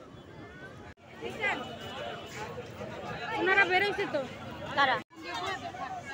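A crowd of people chatters nearby outdoors.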